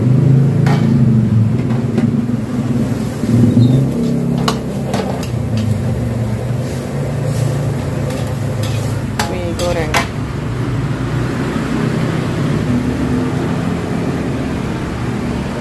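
Vegetables sizzle in a hot wok.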